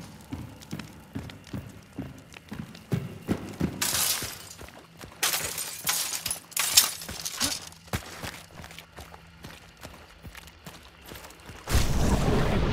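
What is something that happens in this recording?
Footsteps crunch over straw and dirt.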